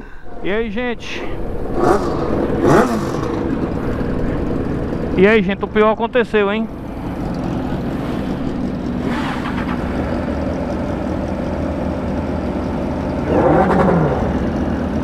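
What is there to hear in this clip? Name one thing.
A motorcycle engine starts and idles with a steady rumble.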